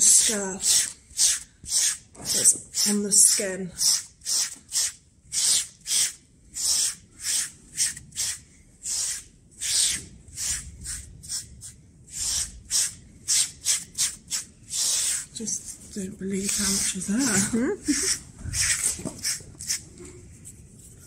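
A wooden grooming block scrapes rhythmically over a horse's coat.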